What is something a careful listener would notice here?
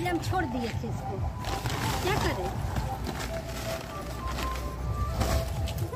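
Plastic sheeting rustles and crinkles as it is pulled.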